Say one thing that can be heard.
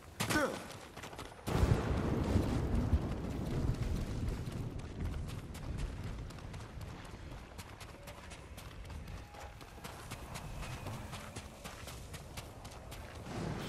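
Footsteps crunch quickly over gravel and pebbles.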